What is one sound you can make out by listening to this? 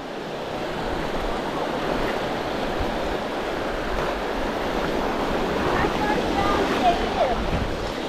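Small waves wash and fizz softly onto a sandy shore.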